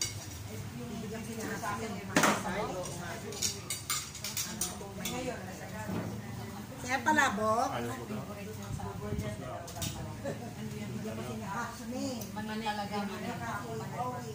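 Several women talk and chat nearby.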